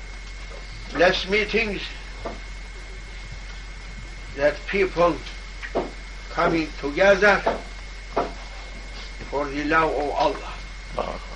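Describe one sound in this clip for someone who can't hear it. An elderly man speaks slowly and calmly, with long pauses, close by.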